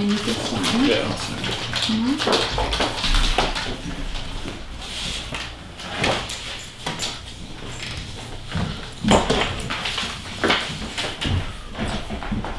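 Paper rustles and shuffles close by.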